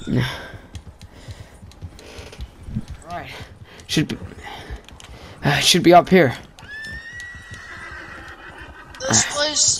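Horse hooves crunch through deep snow.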